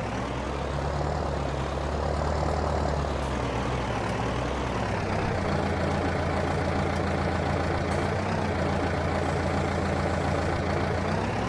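A tractor engine rumbles steadily, changing pitch slightly.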